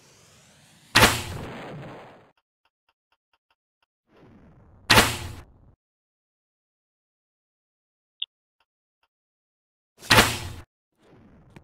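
A grappling gun fires with sharp, loud bangs.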